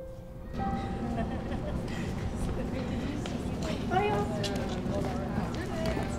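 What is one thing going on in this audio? Young people chatter at a distance outdoors.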